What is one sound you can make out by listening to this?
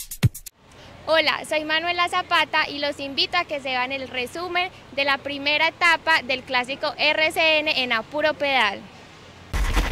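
A young woman speaks clearly and with animation into a handheld microphone.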